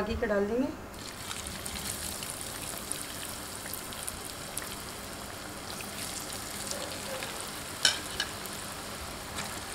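Hot oil sizzles and bubbles steadily as potatoes fry.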